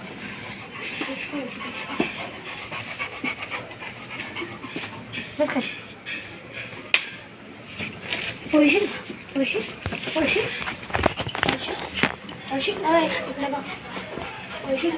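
A boy talks to a dog close by.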